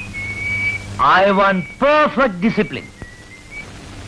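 A man speaks earnestly up close.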